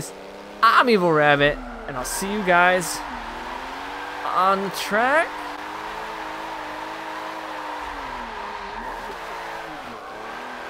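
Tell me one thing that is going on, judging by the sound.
A racing car engine revs hard, rising in pitch and dropping with each gear change.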